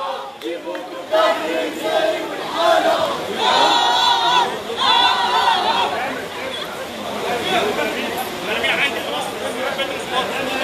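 A large crowd of men chants and cheers loudly close by.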